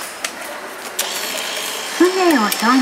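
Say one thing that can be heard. A bill acceptor whirs as it draws in a banknote.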